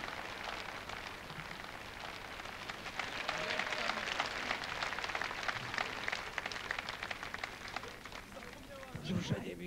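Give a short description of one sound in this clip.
An audience claps and applauds steadily.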